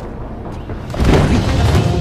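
A heavy rush of movement whooshes as a man leaps.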